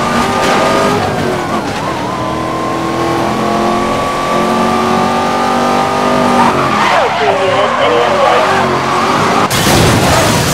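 A sports car engine roars at high revs and shifts gears.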